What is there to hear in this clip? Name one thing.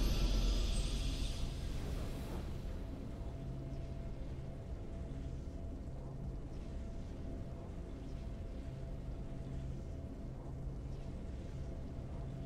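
A triumphant music fanfare plays steadily.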